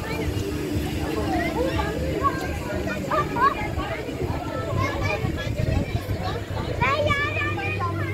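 Riders on a swinging ride shriek and scream in the distance.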